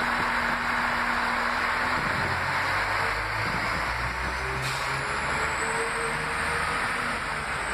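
A train rolls past along the platform, its wheels rumbling.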